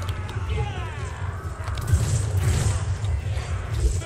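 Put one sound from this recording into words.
A pistol fires in a video game.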